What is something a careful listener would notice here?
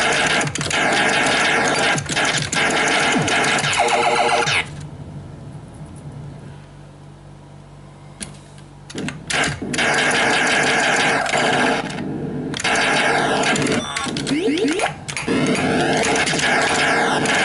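An arcade game plays loud electronic laser shots and explosions.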